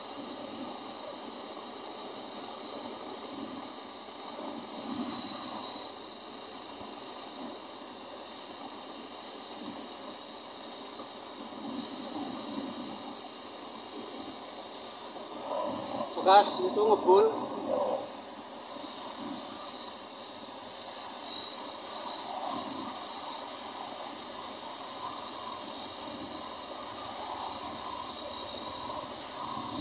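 A gas torch hisses steadily.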